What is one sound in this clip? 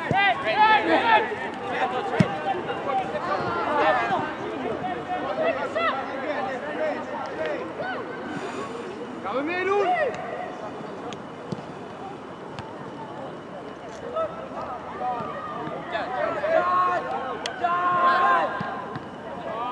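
Young male players shout to each other across an open outdoor field.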